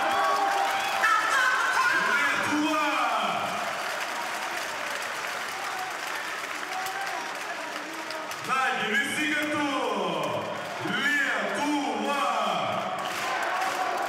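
A crowd cheers and roars in a large echoing hall.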